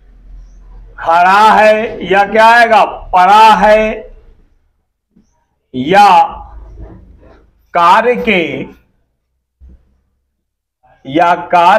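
A man speaks clearly and steadily, close by, in short phrases with pauses.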